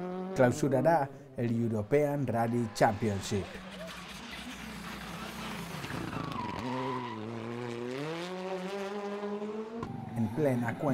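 A rally car engine revs hard and roars past, shifting gears.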